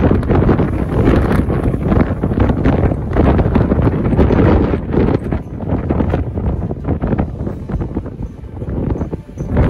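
Waves crash against a harbour wall and spray hisses down.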